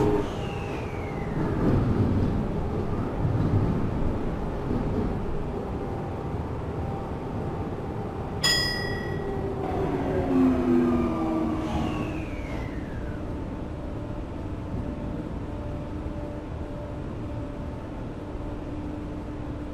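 The inverter motors of an electric commuter train whine as the train accelerates.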